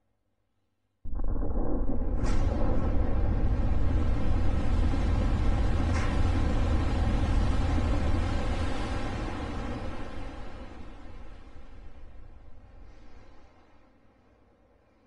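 A huge explosion booms, and its deep roar slowly fades.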